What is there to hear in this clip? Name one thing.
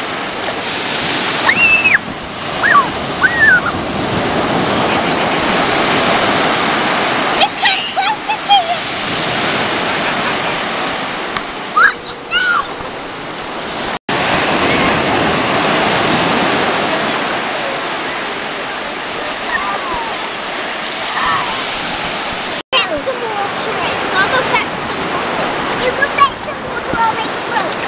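Feet splash in shallow water.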